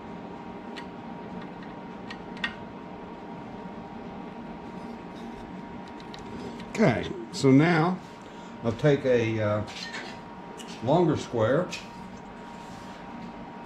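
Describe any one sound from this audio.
A lathe motor hums steadily and quietly.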